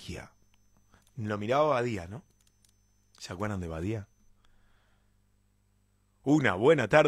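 A young man sings softly into a close microphone with long held notes.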